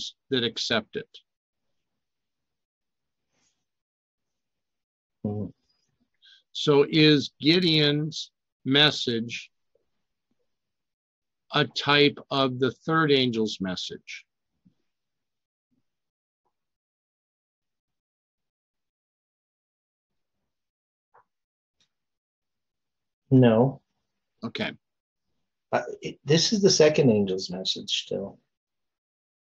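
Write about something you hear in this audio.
An elderly man speaks with animation over an online call, pausing often.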